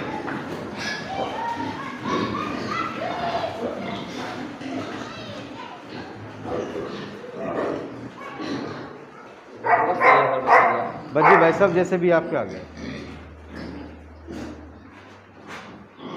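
Piglets squeal and grunt.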